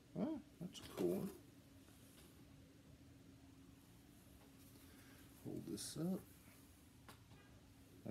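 Fabric rustles as a shirt is handled.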